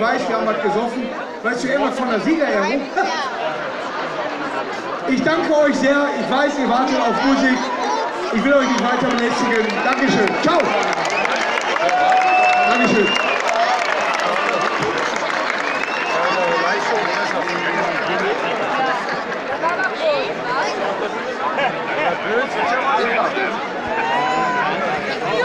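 A large crowd chatters and cheers nearby.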